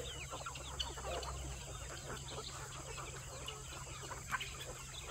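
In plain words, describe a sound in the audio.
A large flock of chickens clucks and chirps busily outdoors.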